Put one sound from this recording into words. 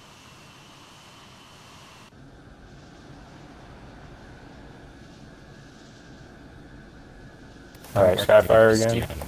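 A jet engine roars steadily.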